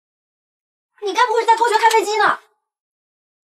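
A young woman speaks briefly with surprise, close by.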